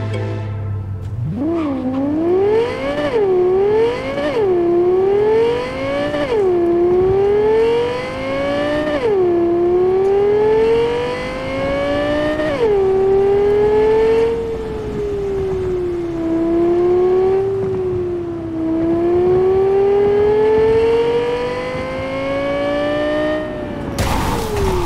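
A car engine revs up and shifts gears repeatedly as the car speeds along.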